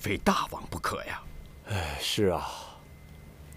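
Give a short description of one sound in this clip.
A middle-aged man speaks gravely and close by.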